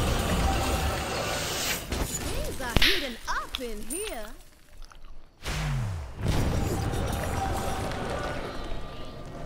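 Magic battle effects whoosh and crackle.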